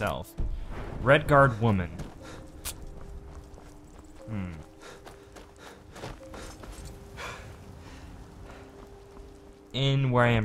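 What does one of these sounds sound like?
Footsteps tread on stone pavement.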